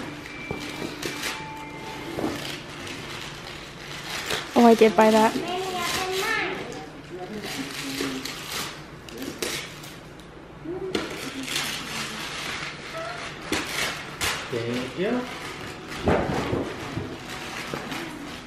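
Wrapping paper crinkles and tears as a young girl unwraps a present.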